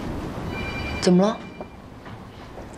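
A woman asks a short question nearby.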